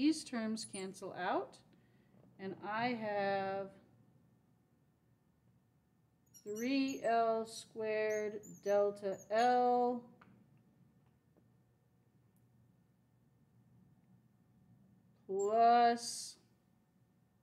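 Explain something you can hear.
A young woman explains calmly in a close, clear voice, with pauses.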